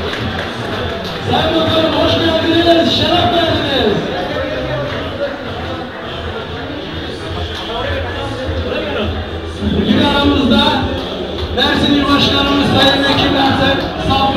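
A large crowd murmurs and talks all around, close by.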